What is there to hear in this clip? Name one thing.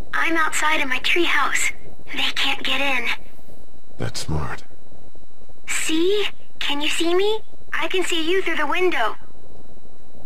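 A man speaks quietly and tensely.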